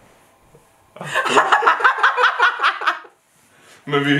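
A young woman laughs loudly and in quick bursts close by.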